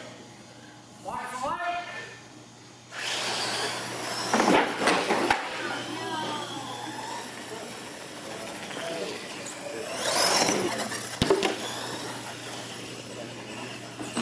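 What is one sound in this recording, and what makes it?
Small electric motors whine and rev as toy trucks race.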